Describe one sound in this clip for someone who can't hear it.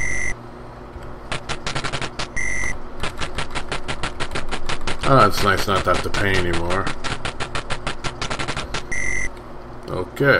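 Arcade coin chimes beep rapidly, over and over.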